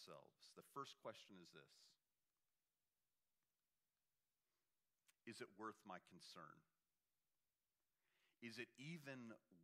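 A middle-aged man speaks steadily, pausing between phrases.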